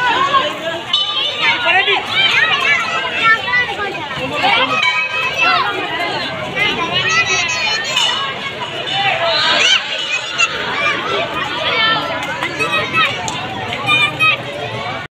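A large crowd of men shout and chant loudly outdoors.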